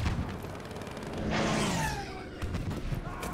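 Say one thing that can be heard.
A plane roars past overhead.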